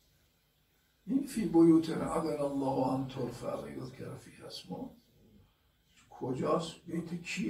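An elderly man speaks slowly and solemnly into a microphone, pausing often.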